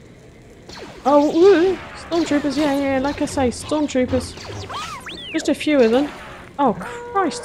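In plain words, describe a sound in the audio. Laser swords hum and clash in a fight.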